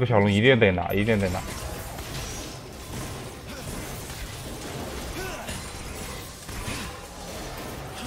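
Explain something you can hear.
Game spells whoosh and crackle during a fight.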